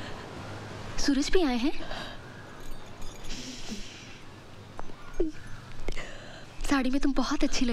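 A young woman speaks softly and playfully close by.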